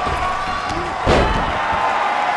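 A heavy thud sounds as a body hits a ring mat.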